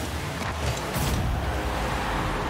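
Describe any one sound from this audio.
A loud explosion bursts.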